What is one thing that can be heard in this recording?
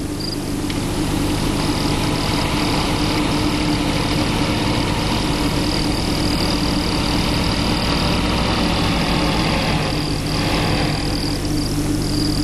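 A car engine hums as a car drives slowly closer.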